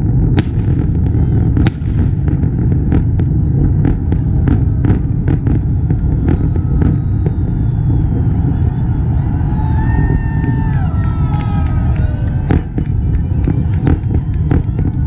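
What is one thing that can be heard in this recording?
Fireworks bang and crackle overhead.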